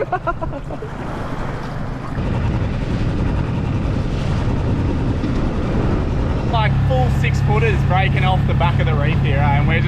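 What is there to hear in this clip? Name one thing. Wind blows across the water.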